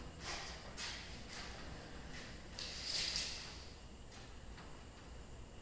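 A hand tool scrapes back and forth across steel.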